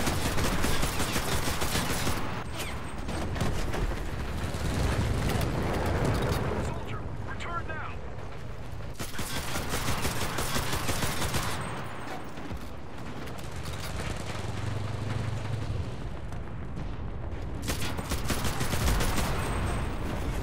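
A heavy armoured vehicle's engine rumbles nearby.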